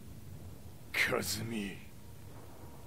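A man speaks a single word in a low, menacing voice, close by.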